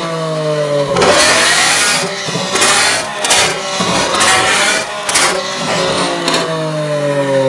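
A sports car engine revs sharply and crackles in bursts.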